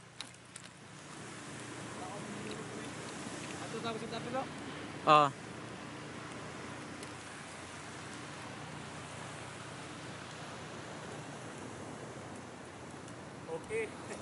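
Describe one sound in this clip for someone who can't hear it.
Waves wash steadily onto a beach.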